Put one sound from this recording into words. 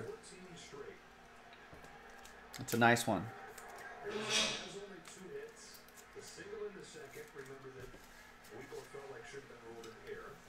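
Trading cards rustle and shuffle in a man's hands.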